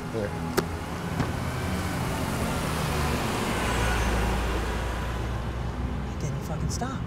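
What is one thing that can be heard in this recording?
A bus drives past with a rising and fading rumble.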